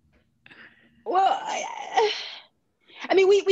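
A woman laughs heartily over an online call.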